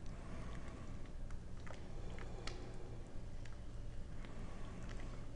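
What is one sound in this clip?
A spoon stirs and scrapes through a stew.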